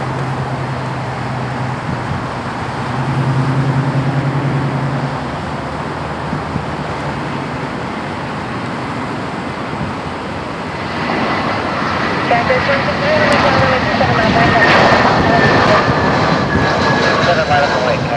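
A jet airliner roars overhead on approach, its engines growing louder and whining as it nears.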